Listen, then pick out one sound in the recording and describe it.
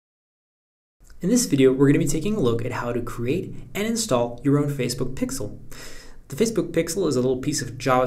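A young man talks calmly and clearly, close to a microphone.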